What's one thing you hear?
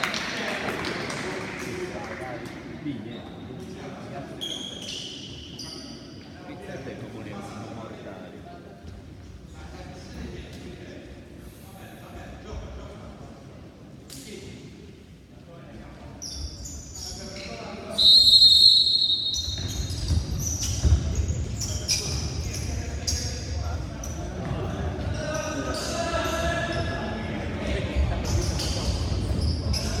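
Sports shoes squeak sharply on a hard floor in a large echoing hall.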